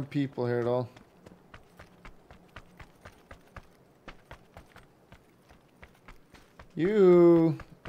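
Footsteps run quickly over sand.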